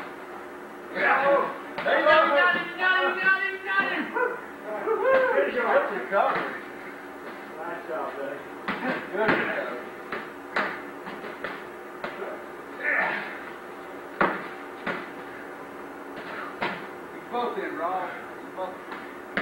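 Men shout and call out in a large echoing hall.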